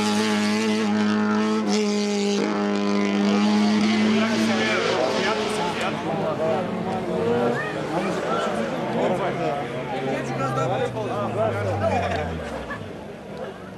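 A rally car engine revs loudly as the car races past close by.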